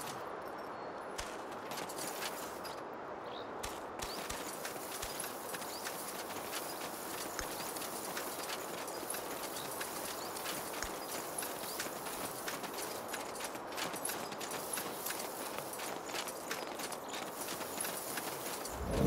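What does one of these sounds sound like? Footsteps crunch over dry ground.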